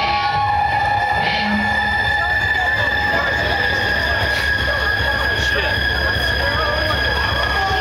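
Drums pound with crashing cymbals.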